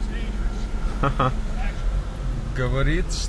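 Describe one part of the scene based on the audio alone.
A young man laughs nearby.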